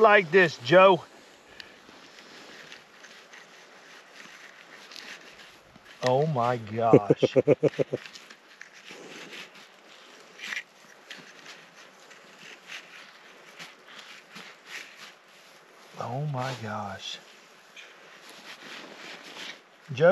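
A hatchet chops through fish with soft thuds.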